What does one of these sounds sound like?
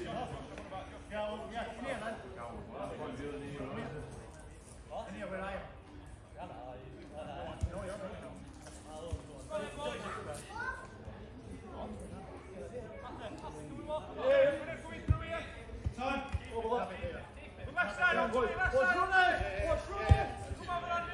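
Men shout and call to each other outdoors.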